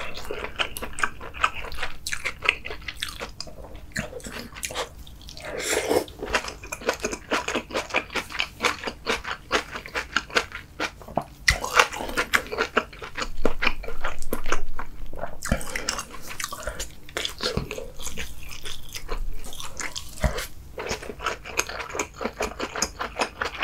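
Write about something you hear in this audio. A man chews food wetly and loudly close to a microphone.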